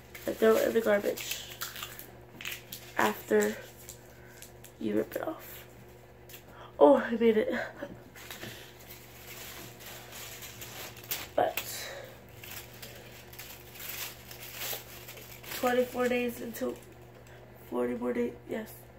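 Paper rustles and crinkles in a girl's hands.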